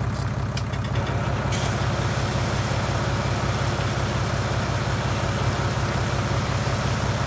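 A pressure washer sprays water with a loud hiss.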